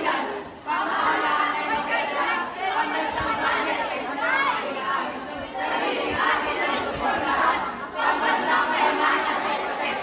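A group of young people chant and shout loudly in a large echoing hall.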